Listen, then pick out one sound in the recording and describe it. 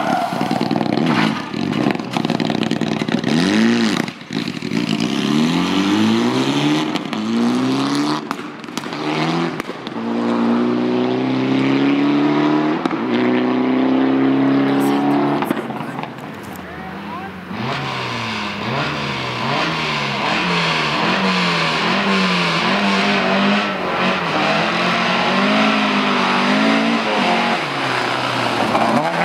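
Gravel sprays and crackles under spinning tyres.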